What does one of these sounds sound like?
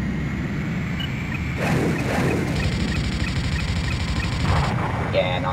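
A lock-on tone beeps in a steady rhythm.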